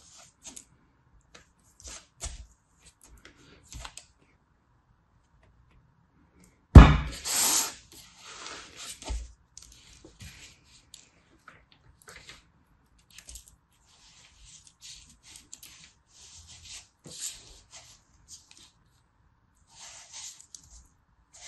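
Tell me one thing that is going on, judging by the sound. Soft sand crumbles and crunches softly between fingers.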